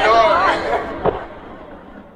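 A skateboard lands with a sharp clack.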